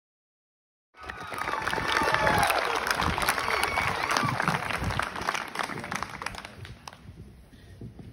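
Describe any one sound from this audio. A group of teenagers shouts loudly in unison.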